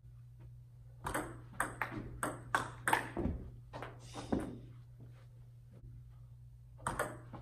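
A ping-pong ball clicks back and forth between paddles and the table in a rally.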